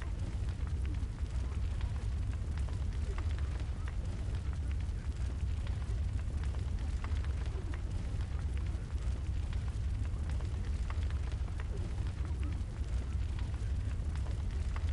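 A fire burns with a low steady roar and soft crackles.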